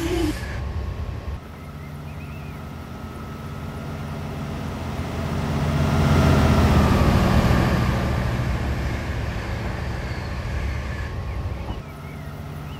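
A freight train passes close by on the next track.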